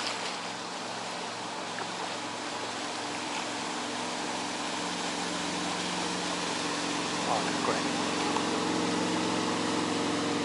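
Water splashes in a motorboat's wake.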